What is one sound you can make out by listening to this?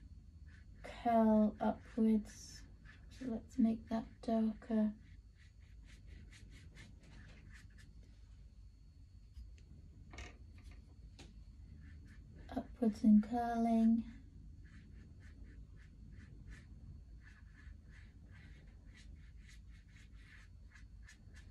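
A brush dabs and scrapes softly on paper.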